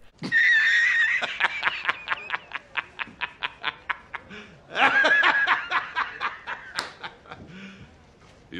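A middle-aged man laughs loudly and heartily in bursts.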